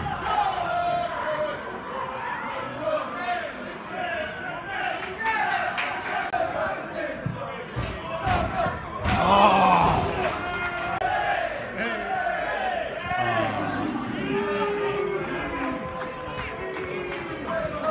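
A crowd of football fans sings and chants outdoors.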